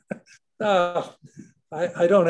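An elderly woman laughs over an online call.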